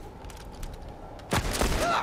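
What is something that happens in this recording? A gunshot bangs sharply.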